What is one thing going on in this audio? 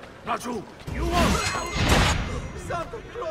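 A heavy scuffle thuds and crashes.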